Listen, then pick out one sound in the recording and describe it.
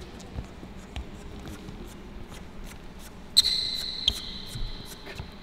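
Footsteps thud softly on a hard floor.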